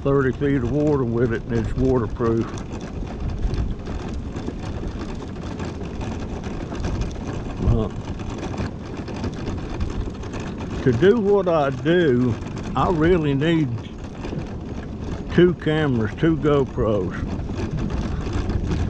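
An electric scooter motor hums steadily.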